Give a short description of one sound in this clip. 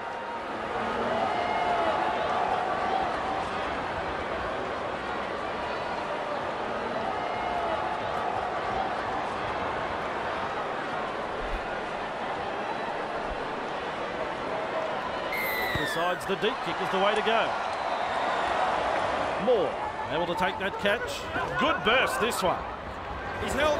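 A large crowd murmurs and roars steadily in a stadium.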